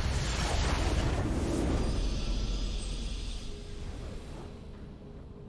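A triumphant game victory sound swells and slowly fades.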